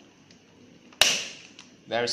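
A plastic battery clicks as it is pressed into place.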